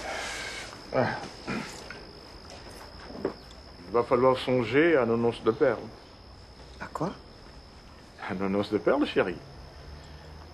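A man speaks in short phrases nearby.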